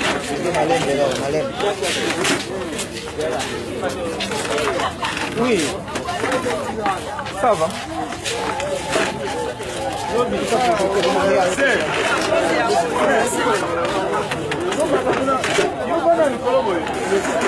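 A crowd of men and women talk and chatter nearby.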